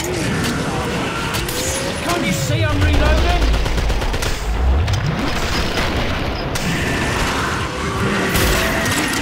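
A rifle fires with loud, sharp cracks.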